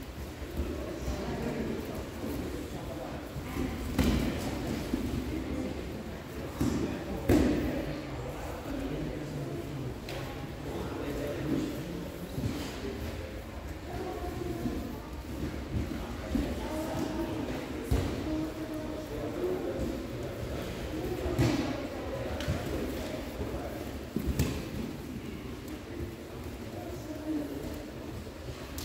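Bodies thump and shuffle on padded mats.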